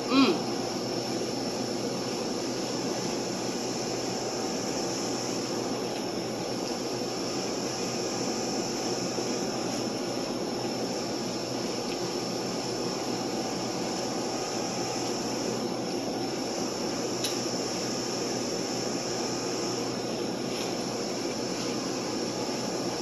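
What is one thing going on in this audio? A refrigerator hums steadily nearby.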